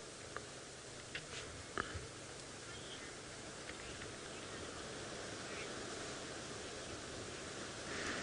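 Lions shift and rustle in the grass close by.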